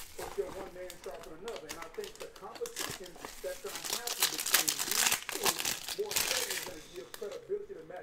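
Foil wrappers crinkle and tear as hands open them.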